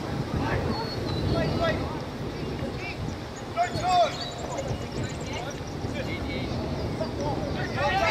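Wind rumbles across the outdoor microphone.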